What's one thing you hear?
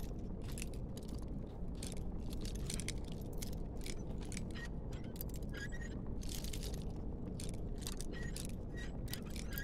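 A lock pick scrapes and clicks inside a metal lock.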